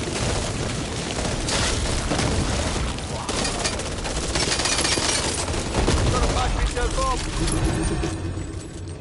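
Rapid gunfire rattles loudly and close by.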